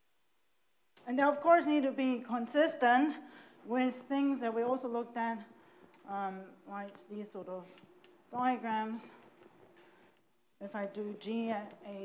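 A woman speaks calmly into a microphone, lecturing.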